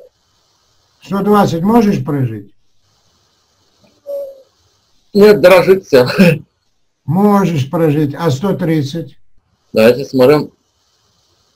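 A man speaks with animation over an online call, in short bursts.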